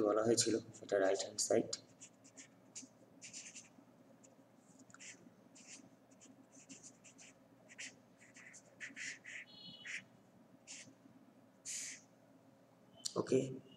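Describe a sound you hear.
A pen scratches across paper in short strokes.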